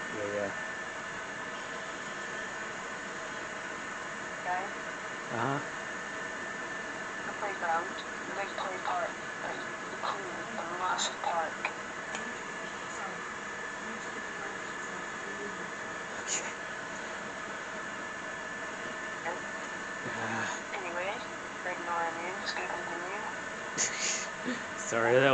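Video game music hums steadily through a television speaker.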